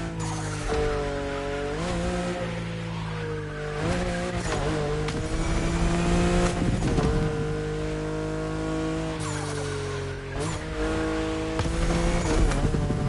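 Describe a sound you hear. A car engine roars at high revs, shifting gears as it speeds along.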